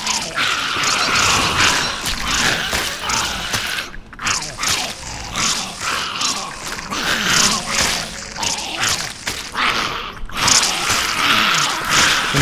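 Spiders screech and hiss while attacking.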